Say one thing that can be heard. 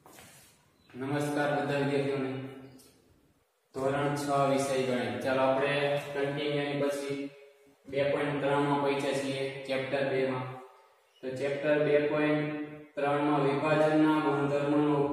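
A young man speaks clearly and steadily, close by.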